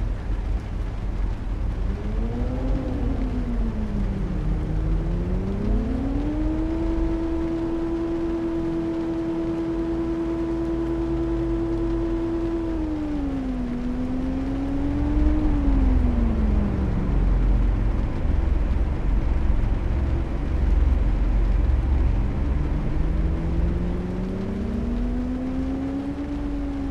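Tyres rumble low on the road.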